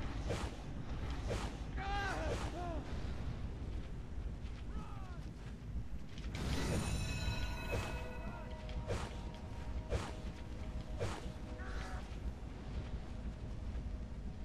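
Game combat effects whoosh and crackle with blasts and zaps.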